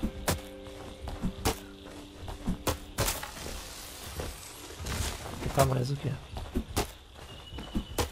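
An axe chops into a tree trunk with sharp knocks.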